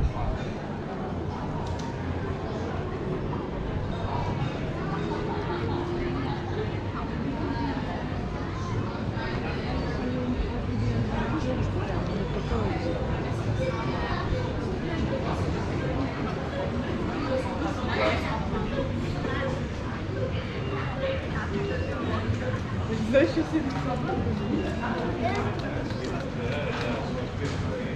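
A crowd of people chatter nearby in an echoing narrow street.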